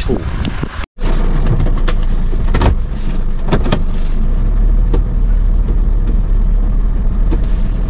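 A vehicle engine hums steadily from inside the cabin.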